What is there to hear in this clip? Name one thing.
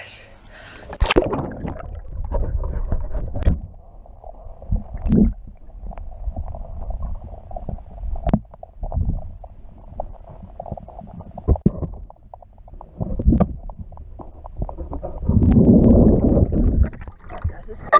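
Water rumbles and bubbles, muffled underwater.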